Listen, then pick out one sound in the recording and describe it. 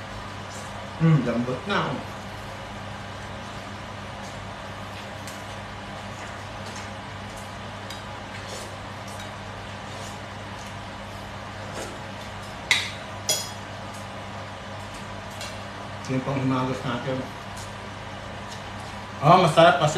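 A young man speaks briefly and casually, close by.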